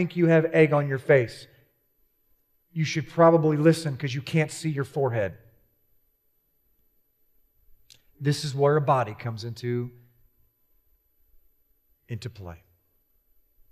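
A young man speaks calmly through a microphone, with pauses.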